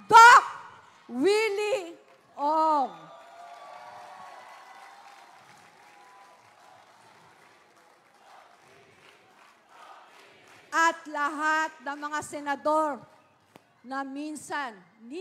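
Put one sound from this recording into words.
An older woman speaks loudly and with animation through a microphone over loudspeakers, with echo outdoors.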